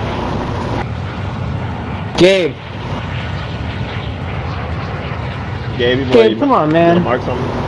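A large propeller plane's engines drone steadily.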